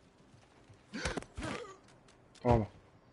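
Fists thud heavily in a brawl.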